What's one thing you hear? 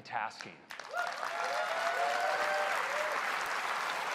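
A crowd whoops and cheers.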